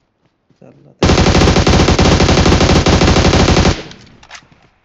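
A rifle fires in a rapid, loud burst.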